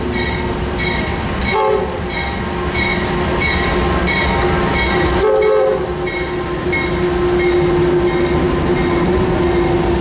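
Diesel locomotives rumble loudly past at close range.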